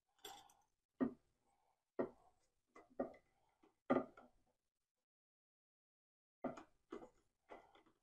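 Small metal parts click softly as they are handled.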